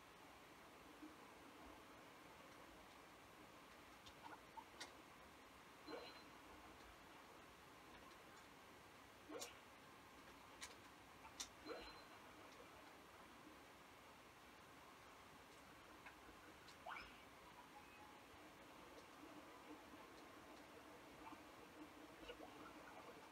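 Short game sound effects chime and blip faintly from a television speaker.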